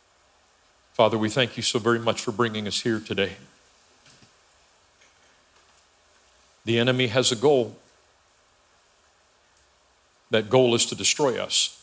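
A man speaks calmly through a microphone in an echoing hall, pausing between phrases.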